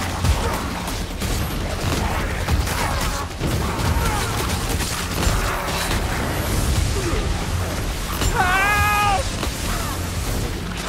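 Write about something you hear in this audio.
Weapons strike and slash through flesh repeatedly.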